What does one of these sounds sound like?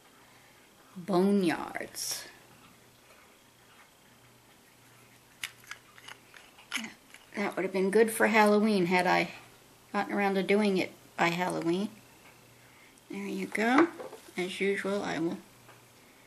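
An older woman speaks calmly and close by, in short phrases with pauses.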